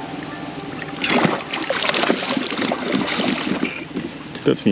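A fish splashes loudly at the water's surface.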